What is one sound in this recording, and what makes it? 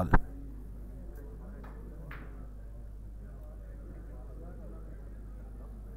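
Snooker balls click softly against each other on the table.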